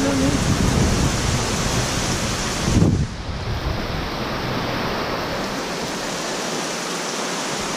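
Heavy rain patters steadily on a metal roof outdoors.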